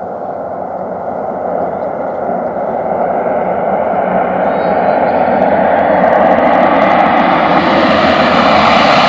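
A twin-engine turboprop water bomber roars, growing louder as it approaches.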